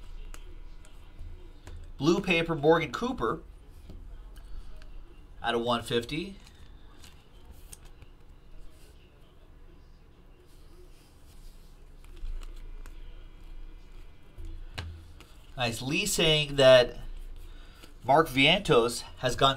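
Trading cards rustle and flick as hands shuffle them.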